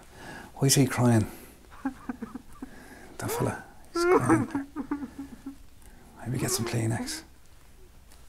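A man speaks clearly and calmly into a close microphone.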